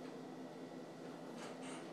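A young man exhales a long breath of vapour.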